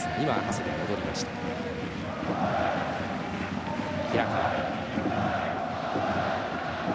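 A large stadium crowd chants and sings steadily outdoors.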